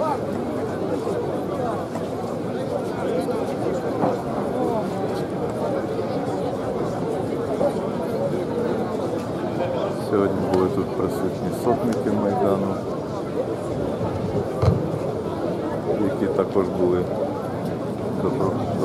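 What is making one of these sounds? A large crowd of men and women talks and murmurs all around outdoors.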